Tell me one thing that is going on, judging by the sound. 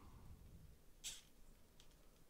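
Small plastic joints click as a toy figure is bent.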